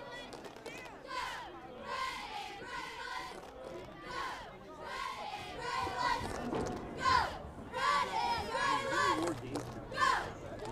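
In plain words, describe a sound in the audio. Young women chant and shout loudly outdoors.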